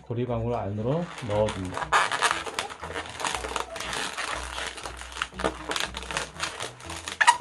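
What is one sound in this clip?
Rubber balloons squeak and rub as hands twist them.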